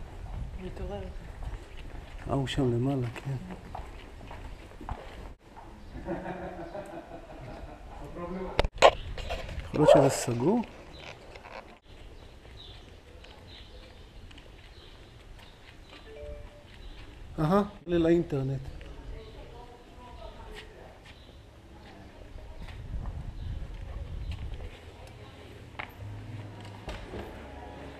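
Footsteps scuff on a paved street.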